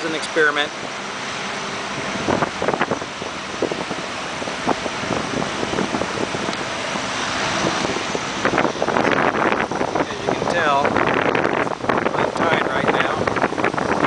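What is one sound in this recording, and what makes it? Wind blows across the microphone in gusts.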